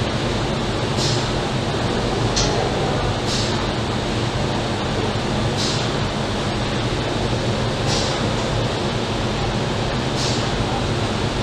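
Compressed air hisses in short regular bursts.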